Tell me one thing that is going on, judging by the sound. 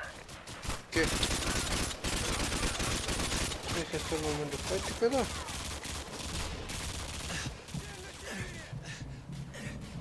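A rifle fires in rapid bursts of sharp shots.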